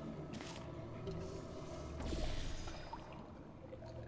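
A portal gun fires with a short zap.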